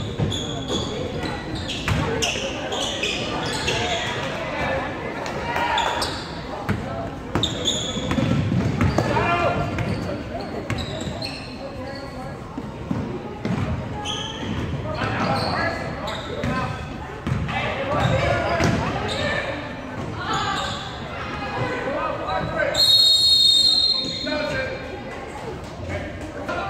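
A crowd of spectators cheers and chatters in an echoing gym.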